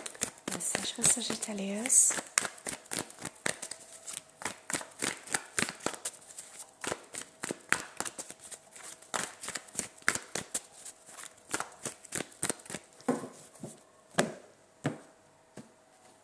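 Cards are shuffled with quick crisp riffling clicks.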